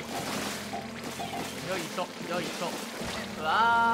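Game enemies burst apart with popping splats.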